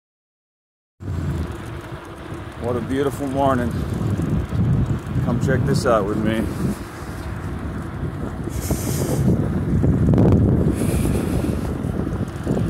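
Wind rumbles loudly against a microphone.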